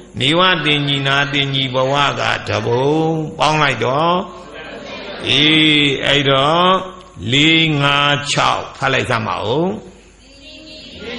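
An elderly man chants in a drawn-out, sing-song voice through a microphone.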